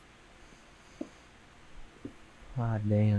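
A pickaxe strikes stone with short, sharp knocks.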